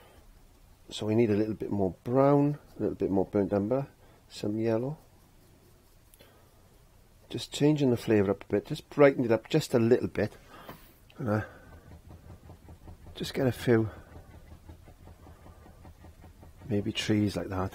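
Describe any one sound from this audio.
A man speaks calmly and close to a microphone, with pauses.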